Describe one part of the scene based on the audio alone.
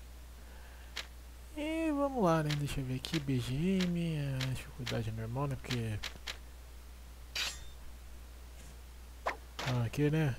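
Short electronic menu clicks sound now and then.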